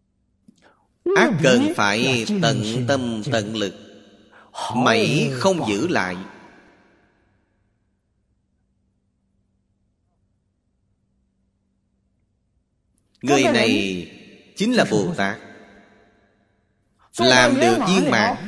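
An elderly man speaks calmly and with feeling into a close microphone.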